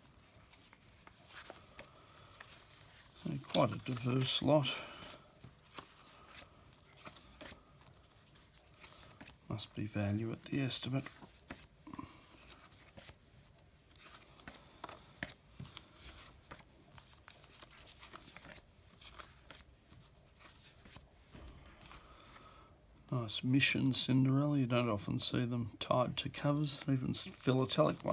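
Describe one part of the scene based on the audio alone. Paper envelopes rustle and crinkle as they are handled.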